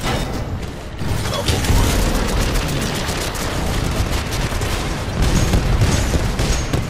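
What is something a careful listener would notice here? Rockets explode with deep booming blasts.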